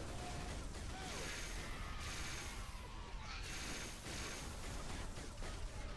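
An energy weapon fires in short bursts.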